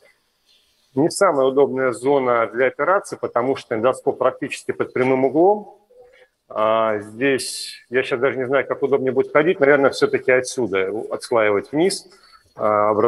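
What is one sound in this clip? A man speaks calmly and steadily.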